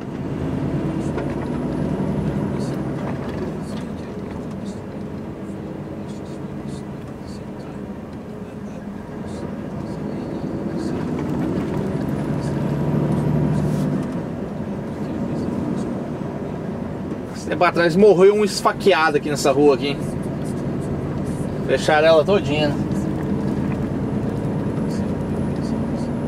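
A large vehicle's engine hums steadily while driving.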